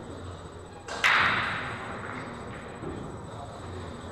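A cue ball smashes into a rack of pool balls with a loud crack and clatter.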